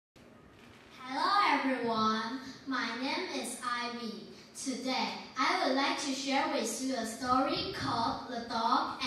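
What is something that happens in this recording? A young girl speaks with animation into a microphone.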